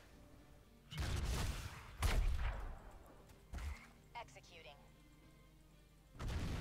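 Magical spell effects zap and burst during a fight.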